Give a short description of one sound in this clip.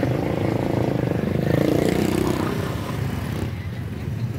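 Motor scooters putter past close by.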